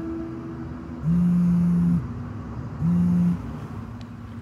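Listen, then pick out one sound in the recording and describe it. A mobile phone buzzes in short steady bursts.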